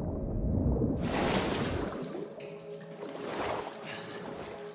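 Water splashes and churns as a body breaks the surface.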